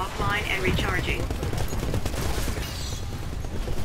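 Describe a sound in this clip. Rapid gunfire blasts from a heavy weapon.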